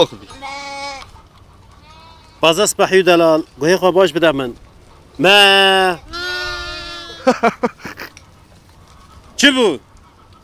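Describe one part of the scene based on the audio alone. Lambs bleat loudly and repeatedly, close by.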